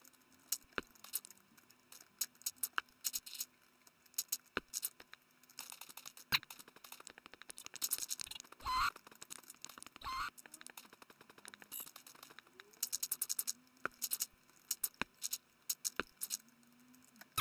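Dirt blocks crunch and break apart in quick bursts.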